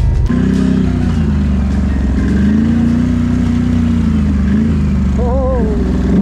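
A quad bike engine rumbles close by, its pitch rising and falling.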